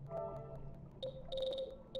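A short electronic menu chime sounds.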